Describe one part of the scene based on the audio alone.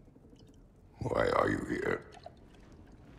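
A man with a low, rough voice asks a short question.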